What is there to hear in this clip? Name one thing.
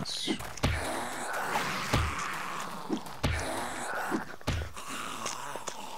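A club thuds heavily against a body several times.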